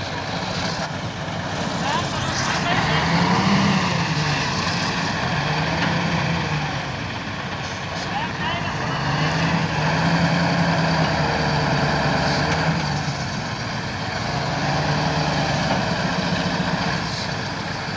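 A heavy truck's diesel engine rumbles and revs up and down close by.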